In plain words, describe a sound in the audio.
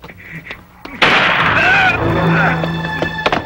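A man cries out in alarm.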